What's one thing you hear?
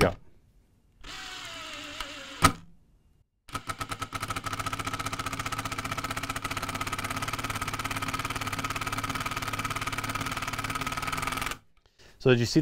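A cordless drill whirs steadily as it drives a screw into wood.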